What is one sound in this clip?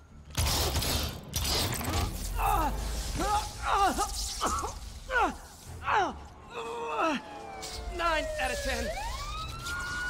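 A man speaks tensely.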